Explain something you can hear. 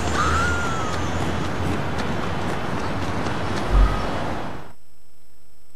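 Quick footsteps patter on pavement.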